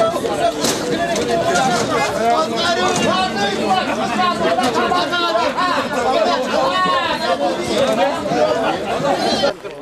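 Drums beat along with a chanting crowd.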